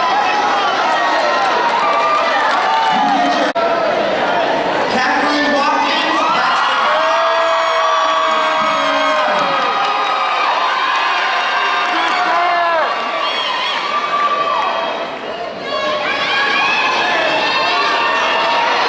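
A woman speaks with animation into a microphone, heard through loudspeakers in a large echoing hall.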